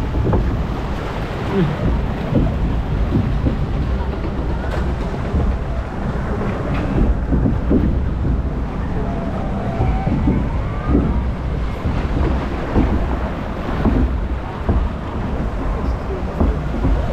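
Wind buffets loudly, rumbling low.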